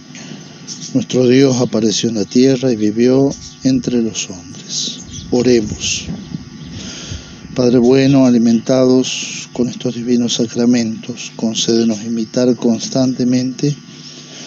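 A man chants slowly in a steady, sung voice.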